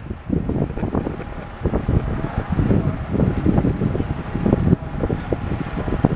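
A bicycle's tyres hiss on a wet road.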